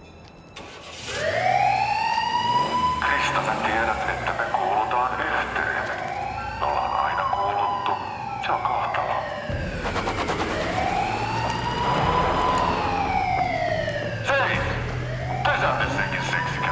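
A police siren wails loudly, rising and falling over and over.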